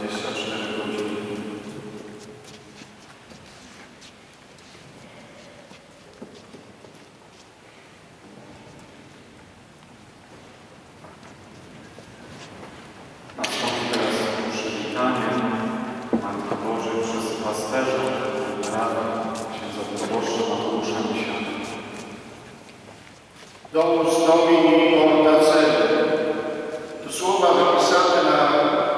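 A congregation of men and women sings a hymn in a large, echoing church.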